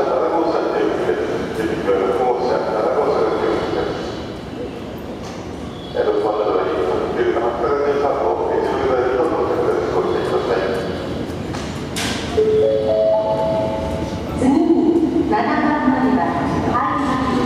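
An electric express train pulls into a station platform and slows.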